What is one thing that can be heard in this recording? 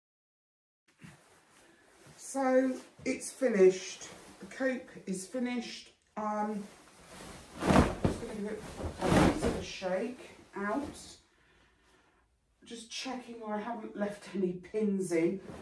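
An elderly woman speaks calmly, close by.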